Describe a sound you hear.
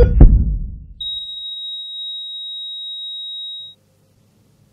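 A heart monitor gives a long, steady, high beep.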